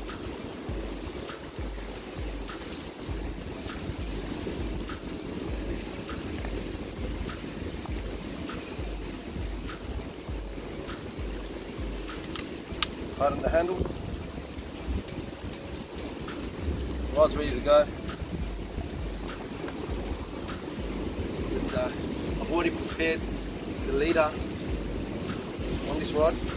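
Waves wash against rocks nearby.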